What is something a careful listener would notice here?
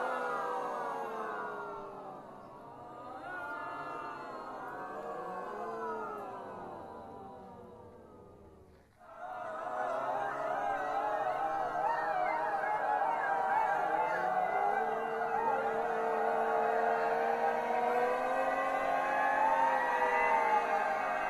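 A mixed choir sings together outdoors.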